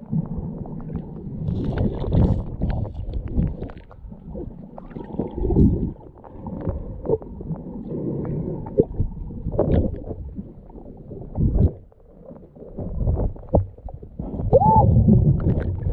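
Water gurgles and rushes, heard muffled from underwater.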